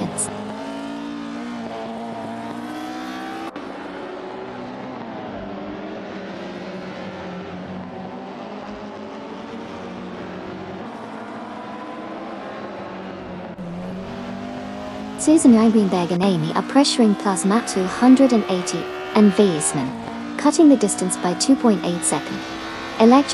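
A racing car engine whines at high revs, rising and falling as it shifts gears.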